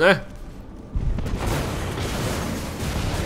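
An explosion bursts and roars.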